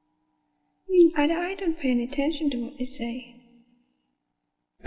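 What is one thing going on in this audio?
A woman speaks calmly and quietly, close by.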